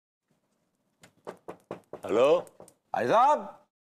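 A man knocks on a door.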